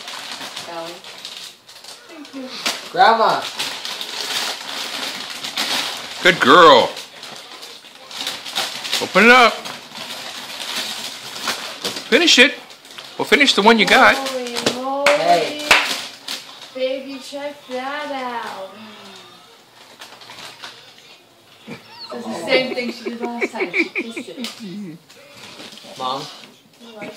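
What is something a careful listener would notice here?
A woman talks to a baby in a high, animated voice nearby.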